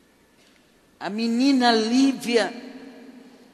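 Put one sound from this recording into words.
An elderly woman sings loudly into a microphone.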